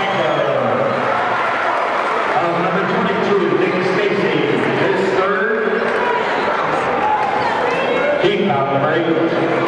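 A crowd chatters and calls out in a large echoing gym.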